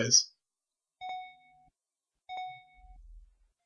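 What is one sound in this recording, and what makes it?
Short electronic beeps sound twice.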